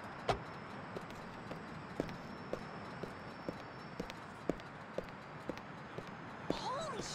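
Footsteps tap steadily on pavement.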